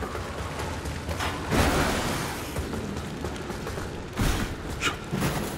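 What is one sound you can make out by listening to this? A heavy blade strikes with loud, crackling impacts.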